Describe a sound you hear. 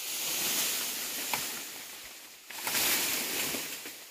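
Bamboo stems creak and knock as a person pulls on them.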